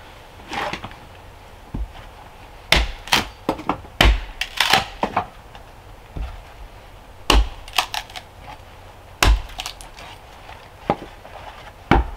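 Split logs clatter and knock as a man stacks them onto a woodpile.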